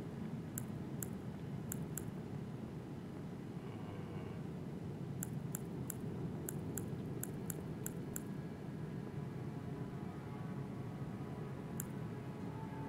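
Short, high menu clicks tick as a selection moves from item to item.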